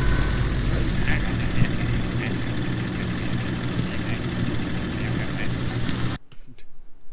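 A man talks into a headset microphone with animation.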